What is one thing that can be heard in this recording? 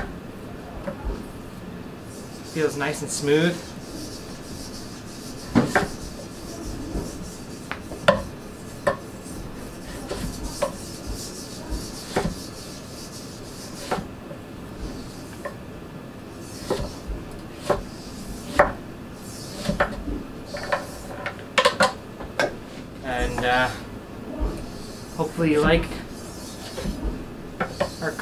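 A knife chops through squash and knocks on a wooden cutting board.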